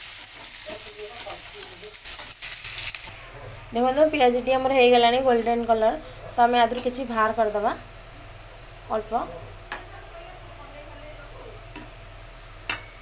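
Food sizzles softly in hot oil.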